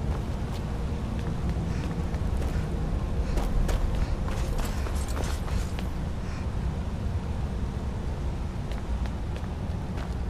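Footsteps thud on stone steps.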